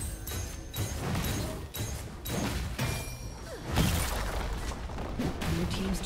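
Game spell effects crackle and clash in quick bursts.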